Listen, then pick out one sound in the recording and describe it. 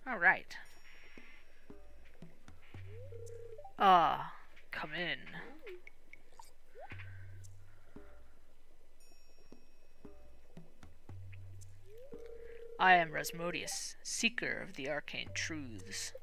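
A cauldron bubbles softly.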